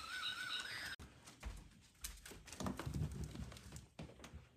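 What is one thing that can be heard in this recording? A dog climbs stairs with soft, quick thumps.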